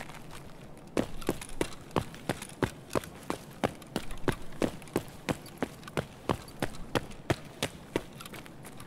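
Footsteps thud at a quick walking pace on a hard floor.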